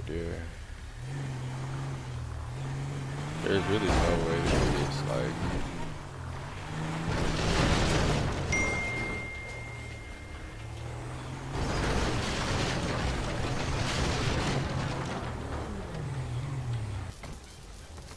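A car engine hums and revs as a vehicle drives.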